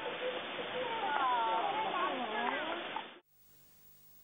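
Chimpanzees screech and hoot loudly.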